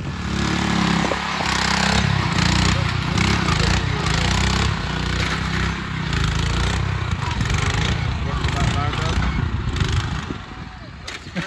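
An engine rumbles steadily as a small vehicle drives over grass.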